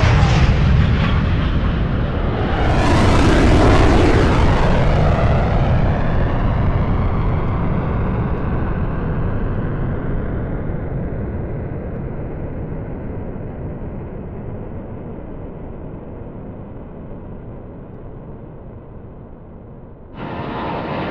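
A jet engine roars loudly overhead and slowly fades.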